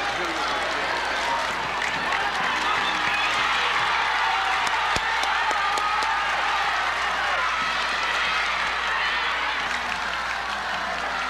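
A large crowd cheers and shouts from the stands.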